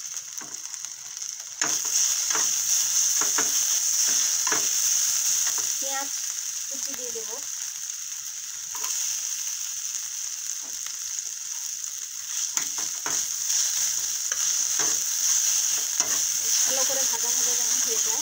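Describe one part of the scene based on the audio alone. Egg and onion sizzle in oil in an iron pan.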